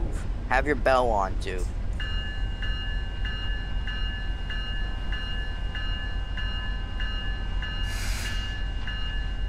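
A passenger train rumbles as it pulls away along the track.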